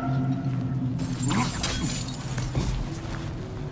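A heavy figure leaps and lands with a loud thud.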